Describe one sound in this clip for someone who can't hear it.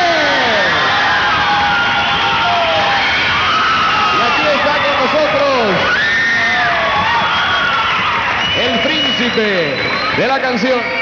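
A man speaks with animation into a microphone over a loudspeaker in a large hall.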